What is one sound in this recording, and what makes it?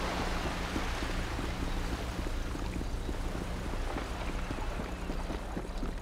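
Footsteps run across wooden boards.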